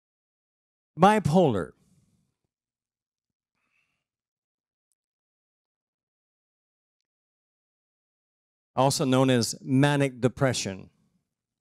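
An older man speaks into a microphone over loudspeakers, pausing at length between phrases.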